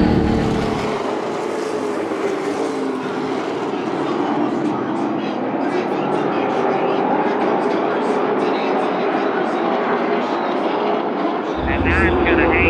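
Race cars roar past in the distance outdoors.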